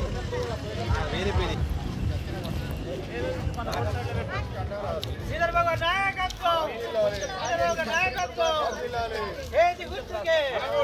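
A group of men and women talk and call out outdoors.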